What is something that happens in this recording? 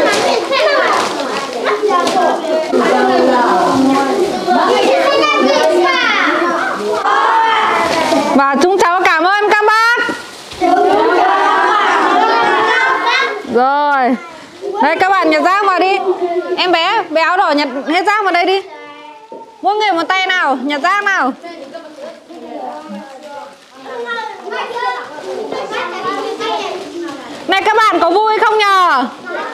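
Many children chatter and call out excitedly close by.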